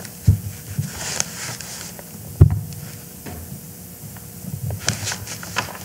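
Scroll handles knock and rustle close by.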